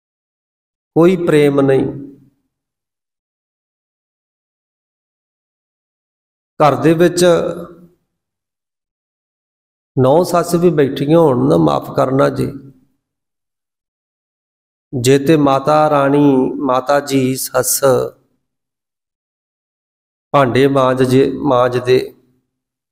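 A man chants or recites in short phrases through a microphone, with pauses of silence between.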